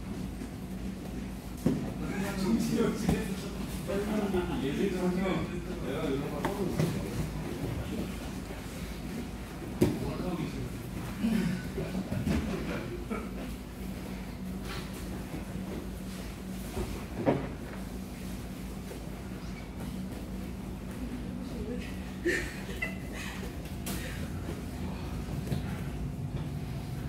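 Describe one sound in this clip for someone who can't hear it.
Bodies and limbs thump and shuffle on a padded mat.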